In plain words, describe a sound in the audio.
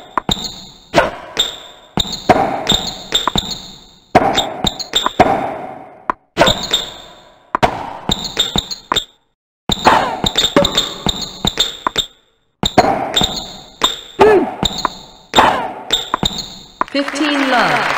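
Tennis rackets strike a ball in quick, sharp hits.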